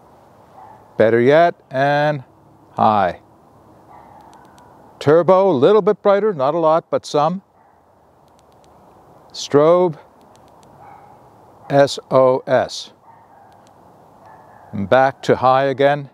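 A man speaks close by in short bursts.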